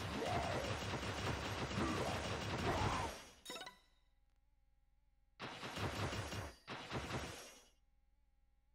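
Magic blasts crackle and whoosh in bursts.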